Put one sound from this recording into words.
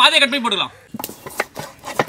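A knife cuts through a potato with a crisp chop.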